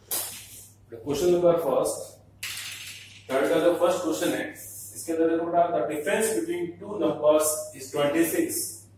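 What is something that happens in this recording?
A man speaks aloud nearby in a small room.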